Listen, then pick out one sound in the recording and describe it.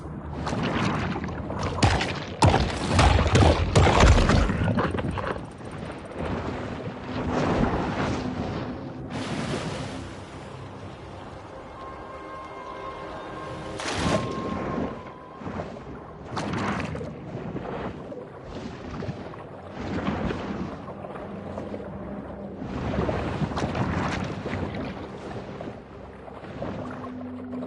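Water swooshes and churns as a shark swims underwater.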